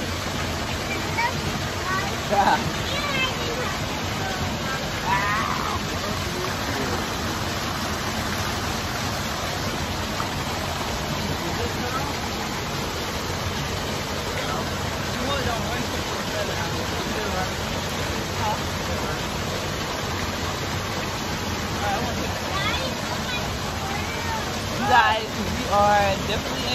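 A waterfall splashes steadily into a pool.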